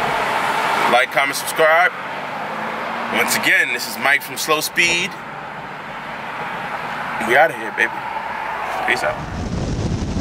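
A car engine hums steadily with road noise.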